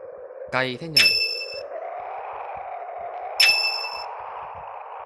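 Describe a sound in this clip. A game chime rings for a successful upgrade.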